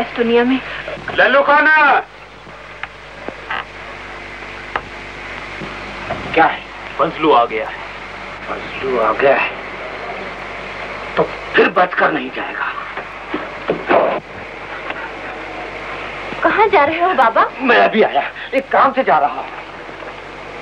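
A man speaks with animation, heard through an old, hissy recording.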